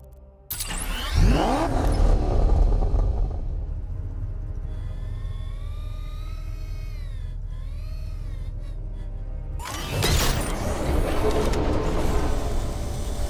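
A powerful car engine hums and roars.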